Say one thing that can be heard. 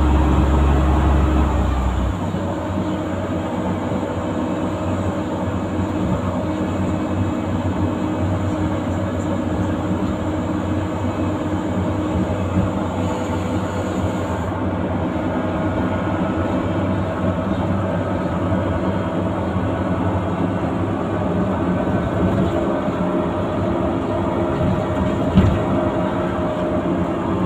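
A bus body rattles and vibrates over the road.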